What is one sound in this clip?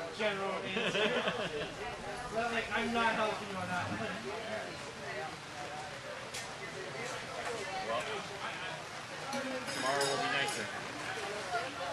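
A man talks and laughs nearby.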